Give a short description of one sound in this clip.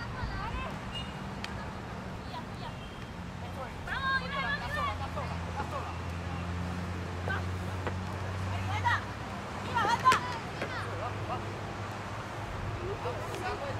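Young women shout and call out to each other across an outdoor field.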